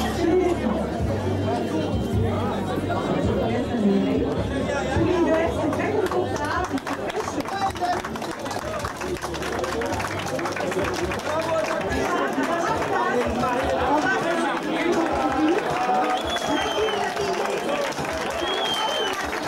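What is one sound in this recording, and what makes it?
A crowd of men and women chatters and calls out loudly nearby.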